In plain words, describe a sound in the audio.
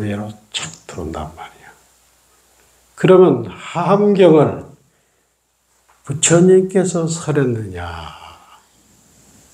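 A middle-aged man speaks calmly into a microphone, pausing between phrases.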